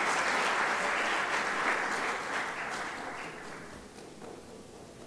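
An audience applauds in a large hall, and the applause fades away.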